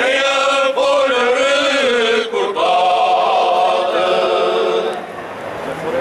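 A group of men sings together in chorus, close by.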